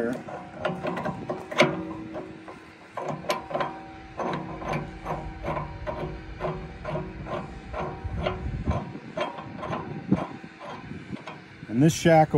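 A metal wrench clinks against a steel pin.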